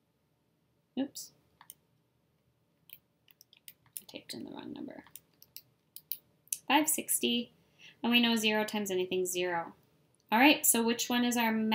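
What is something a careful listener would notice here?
A woman speaks calmly into a close microphone, pausing between phrases.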